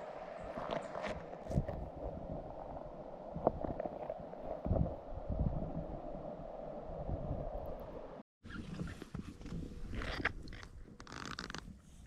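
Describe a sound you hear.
Water trickles and flows steadily in a shallow stream.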